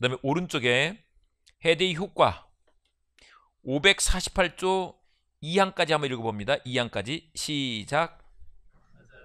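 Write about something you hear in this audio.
A man speaks with animation into a microphone, close and loud.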